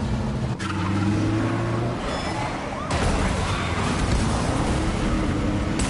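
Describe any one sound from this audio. Car engines roar as vehicles speed along a street.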